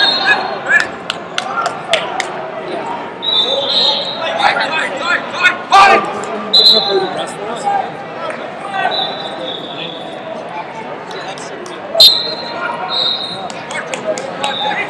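Many people talk and call out in a large echoing hall.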